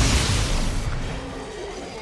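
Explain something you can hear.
An energy weapon fires with a loud crackling hum.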